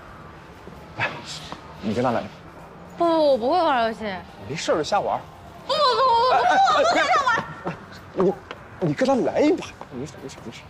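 A young man urges someone on with animation.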